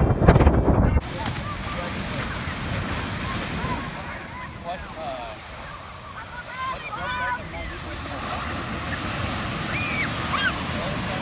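Waves break and wash onto a beach.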